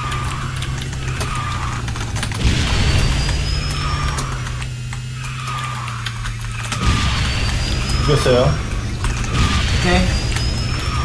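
Racing game engine sounds whine and roar steadily.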